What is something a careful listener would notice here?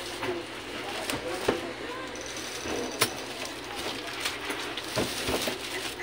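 A plastic strap rattles and snaps against a cardboard box.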